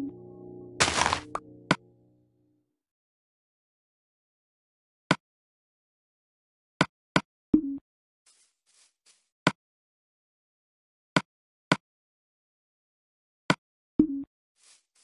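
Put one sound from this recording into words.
Sharp game menu clicks tick now and then.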